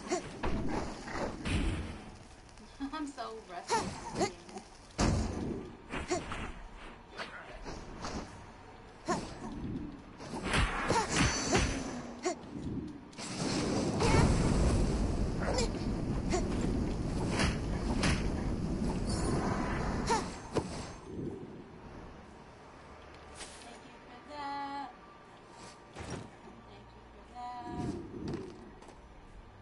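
A young woman talks calmly into a nearby microphone.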